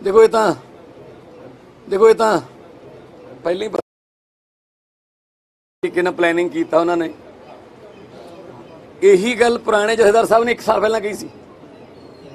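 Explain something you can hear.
A man speaks calmly into microphones, close by, pausing between phrases.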